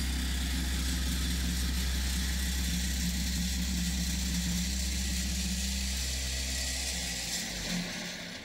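A small truck engine rumbles and then cuts off.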